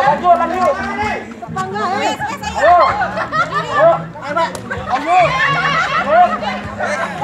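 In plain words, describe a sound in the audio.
A crowd of young people shouts and cheers excitedly nearby outdoors.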